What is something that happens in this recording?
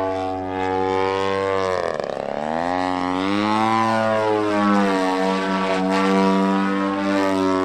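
A model airplane engine whines loudly overhead, its pitch dipping and rising as it swoops.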